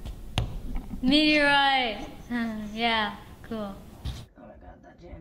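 A boy speaks with animation close by.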